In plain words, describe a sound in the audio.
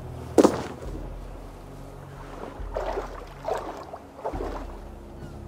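Footsteps splash through shallow water.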